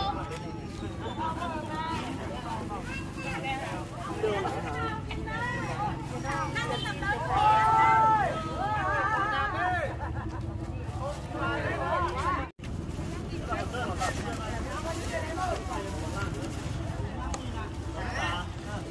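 Two women talk casually nearby.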